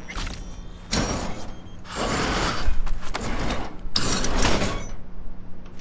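Heavy metal panels scrape and clang as they are forced open.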